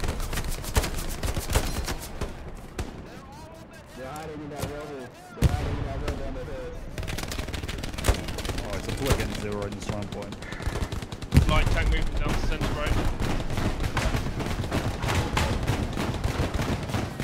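Rifle shots crack sharply, again and again.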